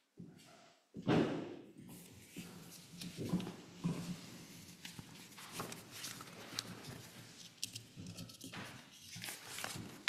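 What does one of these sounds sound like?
An older woman reads aloud calmly through a microphone.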